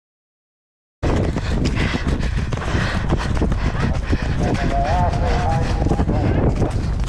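Horses' hooves thud rapidly on grass at a gallop.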